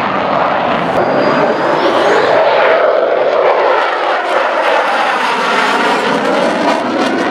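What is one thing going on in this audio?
A jet engine roars loudly as a fighter plane flies past overhead.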